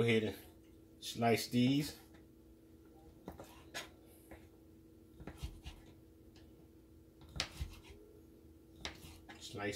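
A knife chops through food onto a cutting board.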